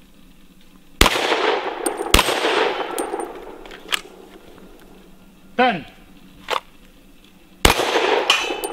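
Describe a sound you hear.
A handgun fires sharp shots that echo across open ground.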